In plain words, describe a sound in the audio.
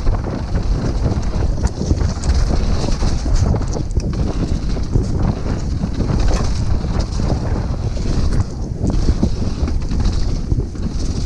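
Wind buffets the microphone as the bike speeds downhill.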